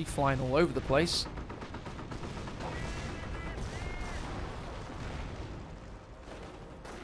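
Explosions boom and crackle in a game.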